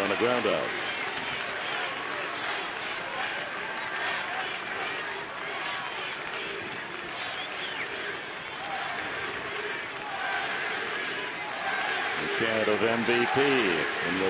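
A large crowd murmurs and chatters steadily all around.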